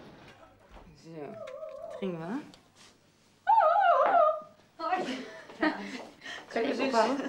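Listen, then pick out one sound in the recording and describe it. A woman talks and laughs cheerfully.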